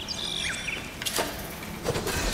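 An arrow whooshes through the air with a sharp zap.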